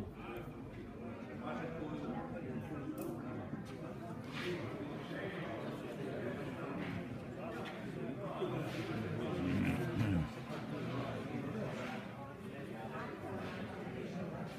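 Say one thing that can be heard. Elderly men talk and murmur nearby in an echoing hall.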